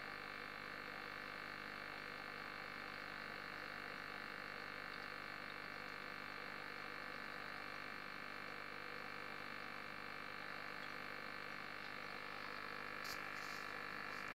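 Water bubbles steadily from an aquarium filter.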